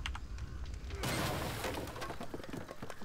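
A magic spell whooshes with a burst of noise.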